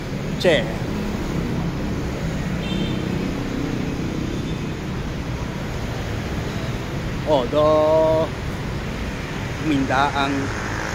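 A motorbike horn honks several times.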